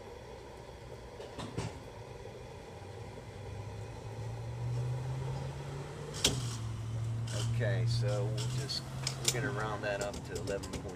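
A fuel pump hums steadily as it dispenses fuel.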